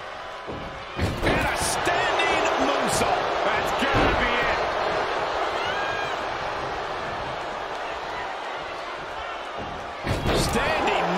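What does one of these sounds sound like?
A body slams hard onto the ring mat with a heavy thud.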